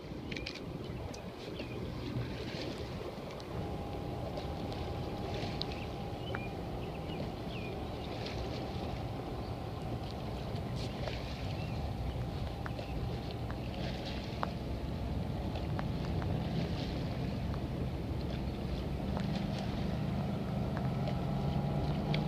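Oars splash and swish through the water in a steady rhythm.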